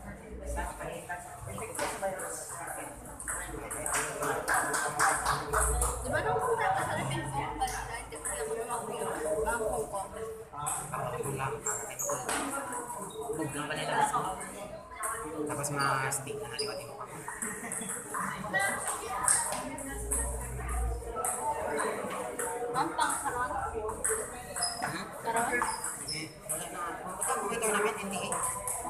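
Young people chatter nearby in an echoing room.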